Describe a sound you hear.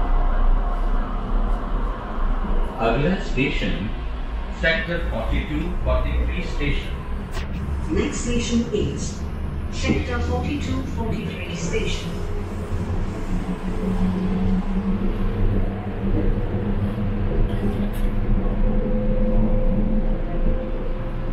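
A train rumbles and hums steadily as it rolls along.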